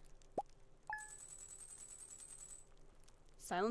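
A video game plays rapid ticking as a score counts up.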